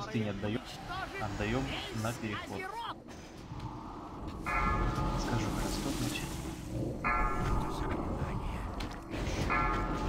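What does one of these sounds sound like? Magic spells whoosh and chime in a busy battle.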